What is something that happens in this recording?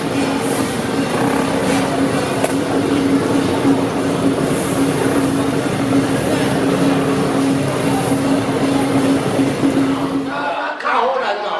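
Brooms sweep and scrape across a paved road.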